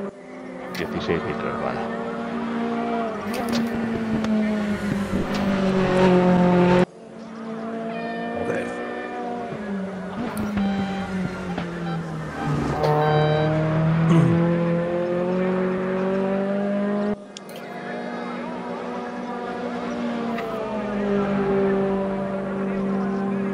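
A race car engine revs high and rises and falls in pitch as it shifts gears.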